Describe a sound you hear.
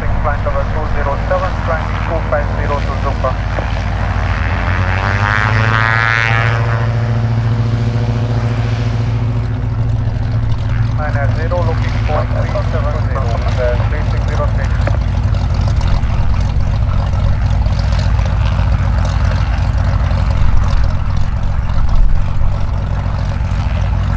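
A small propeller plane's engine drones close by, its pitch sliding as the plane turns past.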